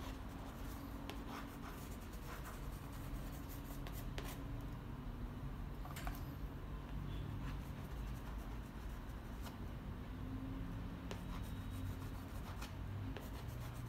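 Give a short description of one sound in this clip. A palette knife scrapes and dabs paint on paper.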